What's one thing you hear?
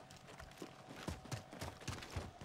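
Gunshots fire in short, sharp bursts.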